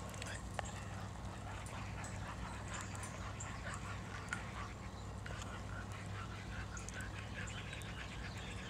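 A small wood fire crackles softly.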